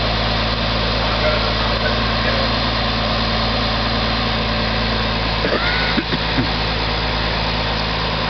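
A fire engine's motor idles with a steady low rumble.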